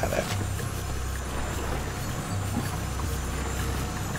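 Water laps softly around a small boat.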